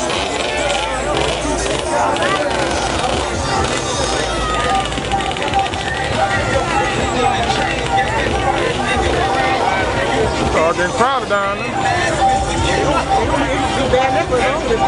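A large crowd chatters outdoors, with many voices of men and women talking and calling out at once.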